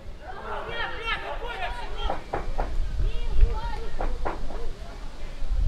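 Men shout in the distance across an open pitch.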